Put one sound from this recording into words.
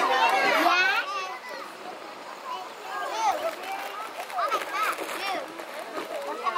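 Children chatter in the distance outdoors.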